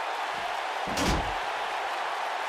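A body thuds onto a floor.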